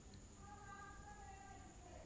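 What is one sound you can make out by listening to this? Liquid pours into a plastic bottle.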